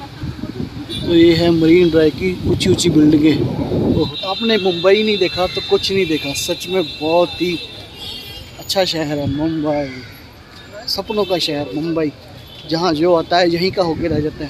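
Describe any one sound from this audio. A middle-aged man talks animatedly close to the microphone.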